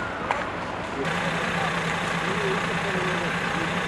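A fire truck engine rumbles steadily nearby.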